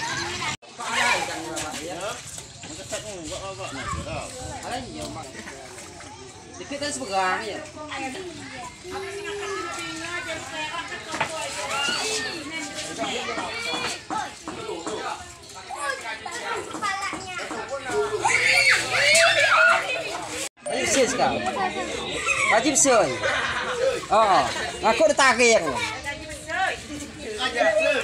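A crowd of men, women and children talk and call out excitedly nearby.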